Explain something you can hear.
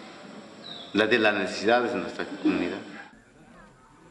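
A man speaks close by with animation.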